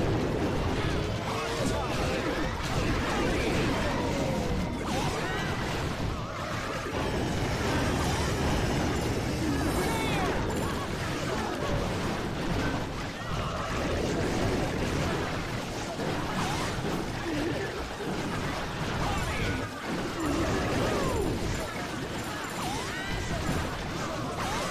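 Battle game effects boom and crackle with small explosions.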